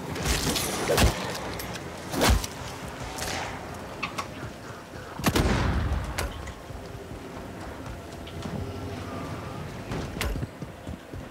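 A rifle fires sharp, loud shots now and then.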